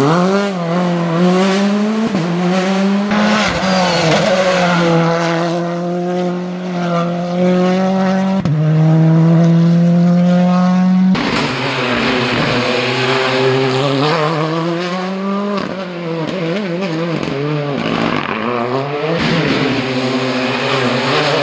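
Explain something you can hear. A rally car engine roars loudly, revving up and down as gears change.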